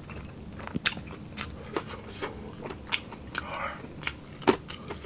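A man chews food wetly and loudly close to a microphone.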